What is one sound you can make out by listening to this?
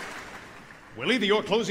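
A man sings into a microphone in a large echoing hall.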